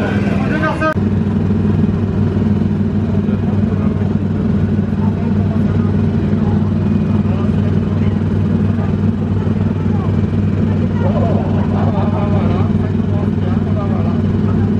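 A ride car hums steadily while stopped on a track.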